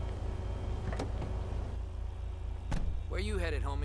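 A car door clicks open and thuds shut.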